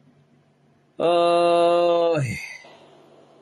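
A middle-aged man chants a long held note.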